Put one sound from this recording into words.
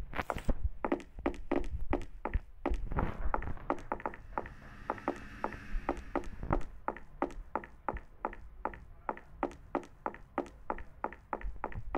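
Footsteps patter quickly on hard pavement.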